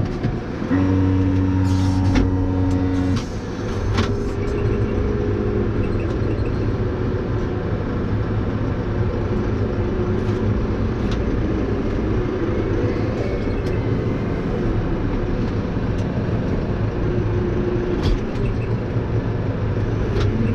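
A diesel tractor engine drones, heard from inside the cab while driving.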